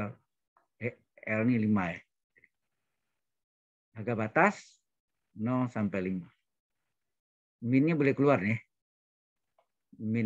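A man explains calmly in short phrases, heard through an online call.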